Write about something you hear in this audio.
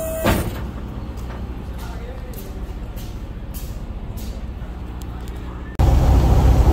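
Footsteps thud on a hollow metal trailer floor.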